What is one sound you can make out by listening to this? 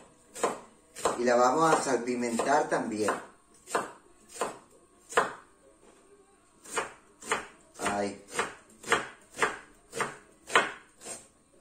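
A knife chops on a wooden board in quick, regular strokes.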